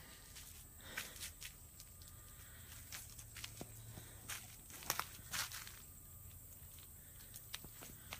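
Leafy branches rustle and brush close by.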